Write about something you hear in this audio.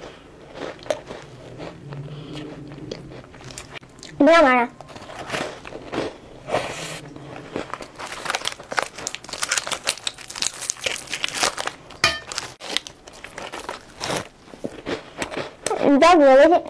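Crisp food crunches as a young woman bites and chews.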